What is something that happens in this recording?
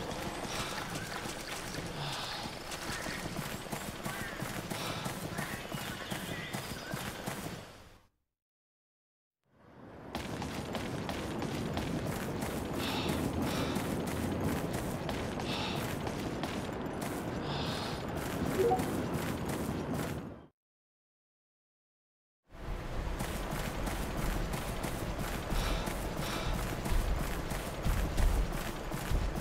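Quick footsteps run over grass and rock.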